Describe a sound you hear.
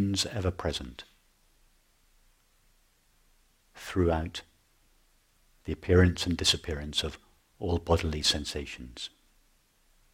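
A middle-aged man speaks calmly and thoughtfully into a close microphone, with long pauses.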